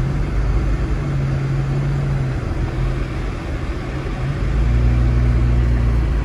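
Strong wind roars outside.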